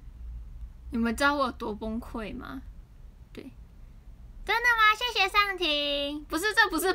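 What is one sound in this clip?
A young woman talks close to a phone microphone, in a high, lively voice.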